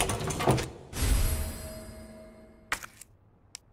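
A drawer slides open with a wooden rumble.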